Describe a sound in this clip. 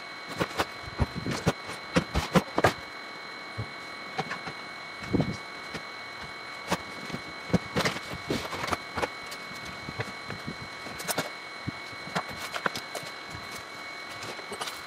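Small tools and objects clatter and knock as a man rummages through them.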